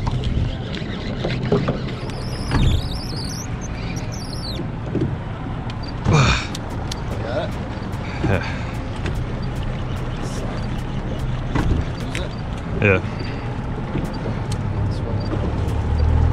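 Wind rumbles outdoors on open water.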